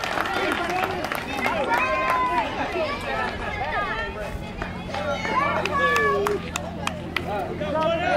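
A crowd of men and women shouts and cheers outdoors.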